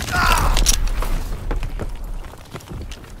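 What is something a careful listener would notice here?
An explosion booms nearby and debris rains down.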